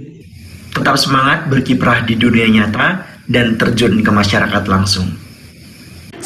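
A young man speaks calmly through a microphone in an online call.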